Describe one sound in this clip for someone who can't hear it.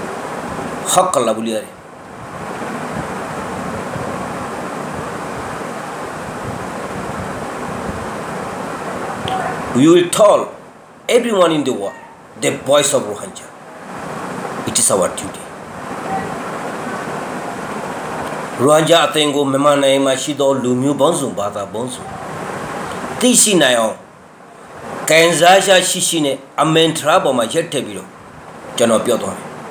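A middle-aged man speaks close to the microphone, in bursts with pauses.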